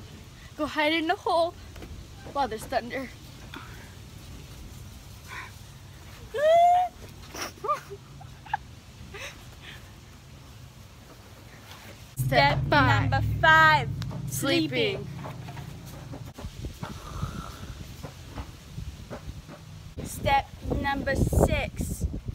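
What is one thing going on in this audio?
A second teenage girl talks close by.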